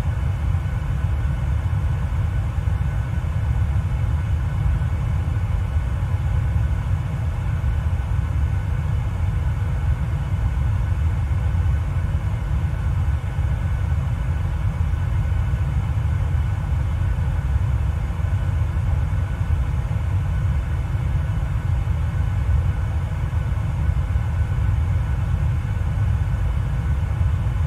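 A jet airliner's engines roar with a steady low rumble in flight.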